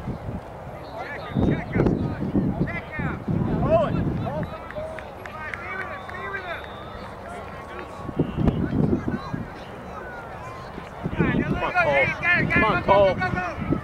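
Young players shout in the distance across a field.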